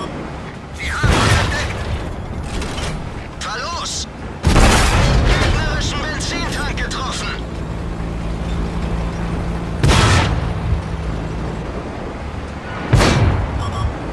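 A tank cannon fires with a loud, booming blast.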